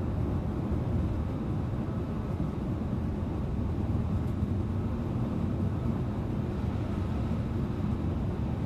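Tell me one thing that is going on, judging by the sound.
A bus engine rumbles steadily from inside the cabin.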